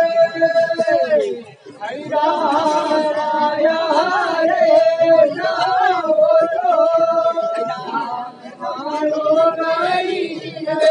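A woman sings loudly in a wavering, high voice outdoors.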